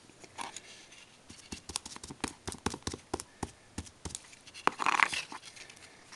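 Paper rustles and crinkles under fingers.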